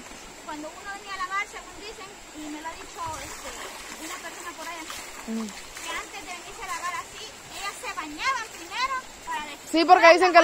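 Water splashes as clothes are washed in a shallow river.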